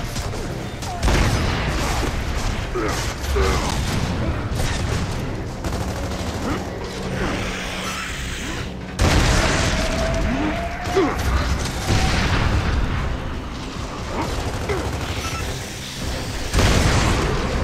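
A sniper rifle fires loud single shots, each with a booming echo.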